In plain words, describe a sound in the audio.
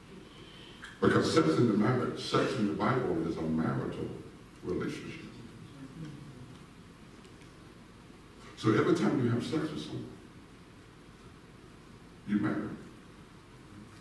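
A man speaks through a microphone in bursts, his voice echoing in a large hall.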